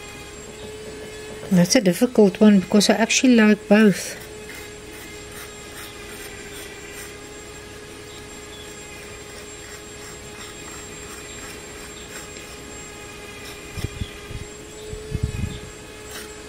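A metal fork scrapes through thick paste on a board.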